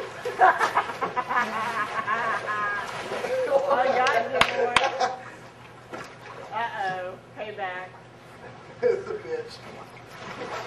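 Voices shout and talk with excitement nearby.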